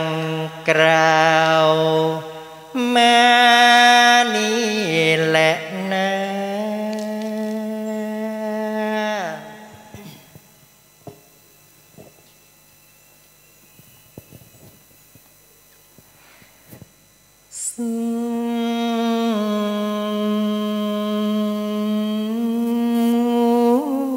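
A man chants in a long, steady, melodic voice through a microphone.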